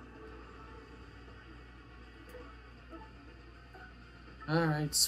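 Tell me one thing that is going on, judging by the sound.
Quiet video game music plays from a television.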